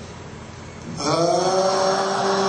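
A man chants loudly through a loudspeaker in a large hall.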